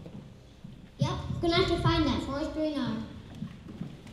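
A young boy speaks into a microphone with animation.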